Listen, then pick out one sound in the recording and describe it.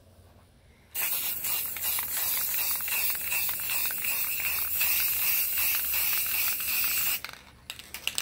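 A spray can hisses loudly and steadily as paint is sprayed.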